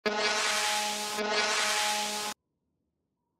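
A magic spell shimmers with a bright, ringing hum, then cuts off.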